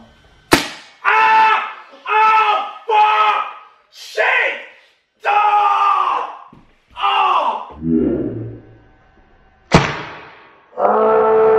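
A young man yells loudly in pain, close by.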